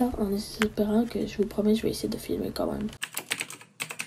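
A young woman talks calmly, close to the microphone.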